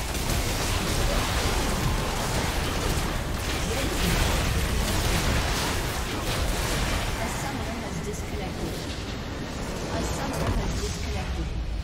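Game spell effects and attacks crackle and boom in a dense, busy clash.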